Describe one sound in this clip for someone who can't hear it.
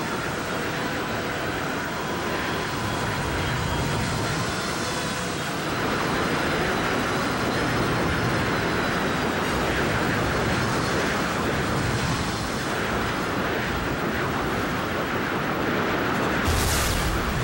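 A starfighter engine roars steadily.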